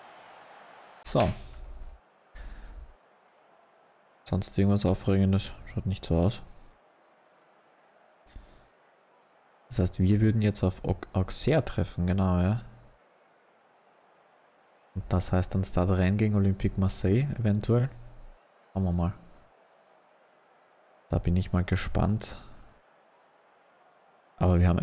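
A man talks calmly and close to a microphone, in short bursts with pauses.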